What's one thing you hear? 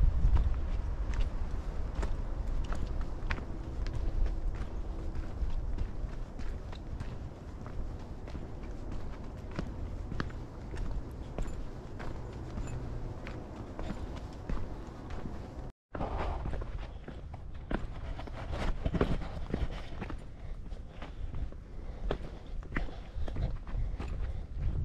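Footsteps crunch on a dry dirt and gravel trail.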